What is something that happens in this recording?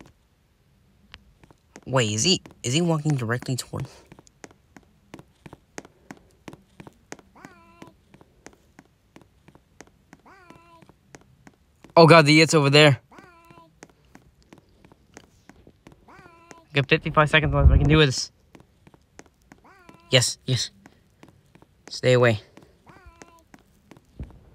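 Quick light footsteps patter steadily on a hard floor.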